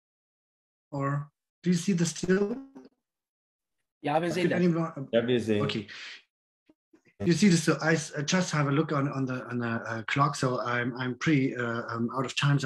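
A middle-aged man speaks with animation over an online call.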